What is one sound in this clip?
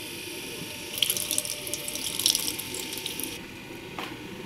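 Water trickles and splashes into a metal basin.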